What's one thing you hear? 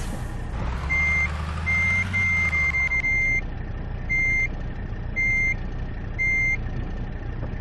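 A truck's reversing alarm beeps in short repeated bursts.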